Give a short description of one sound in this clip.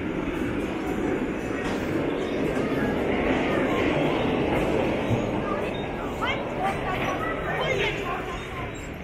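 Bumper cars hum and bump around a rink.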